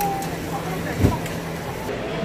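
Metal tongs clack against the griddle.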